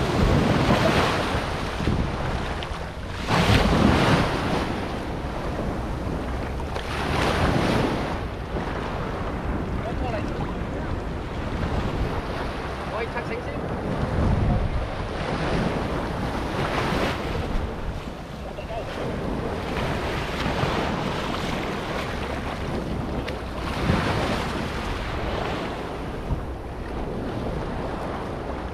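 Small waves wash up onto a sandy shore.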